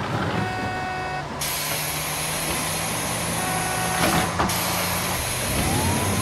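A bus engine hums steadily as it drives along.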